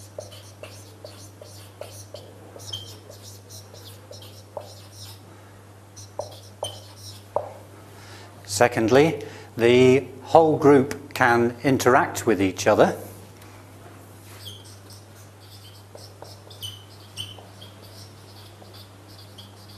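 A marker squeaks and scratches on a whiteboard.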